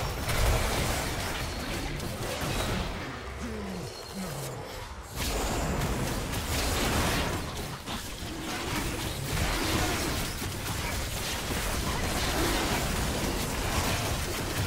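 Spell effects whoosh, crackle and burst in a busy video game fight.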